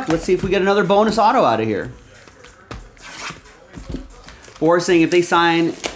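A knife slices through plastic wrap.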